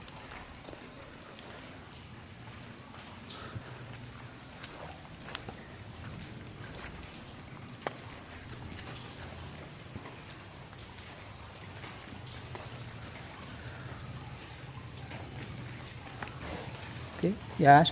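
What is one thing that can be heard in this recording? Water drips softly into a pool inside an echoing cave.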